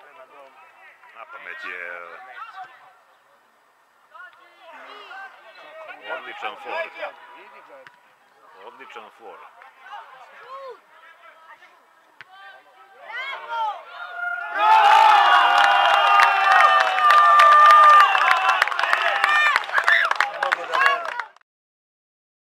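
Young men shout to each other from a distance across an open football pitch.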